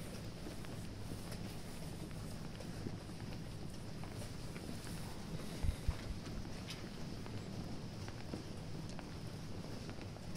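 Footsteps shuffle slowly on pavement.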